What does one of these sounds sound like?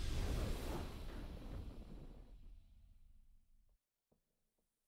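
A triumphant game fanfare swells and then fades away.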